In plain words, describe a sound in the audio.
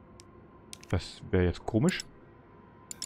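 A young man speaks briefly into a close microphone.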